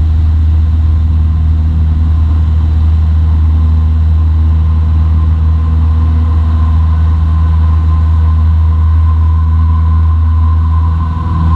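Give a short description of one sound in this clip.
Tyres rumble on a runway.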